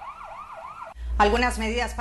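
A young woman speaks clearly into a microphone.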